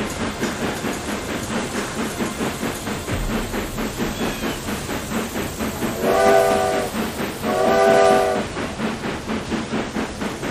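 A steam locomotive chuffs in a quick, steady rhythm.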